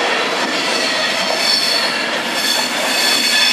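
A train rushes past close by with a roar of air.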